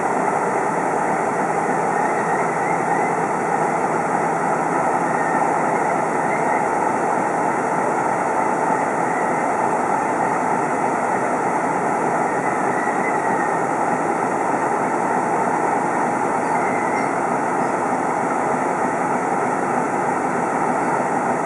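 A hand-turned railway turntable carrying a diesel locomotive rumbles and creaks as it rotates.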